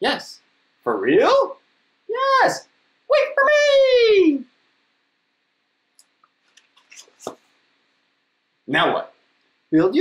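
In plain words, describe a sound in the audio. A man reads aloud up close in playful, animated character voices.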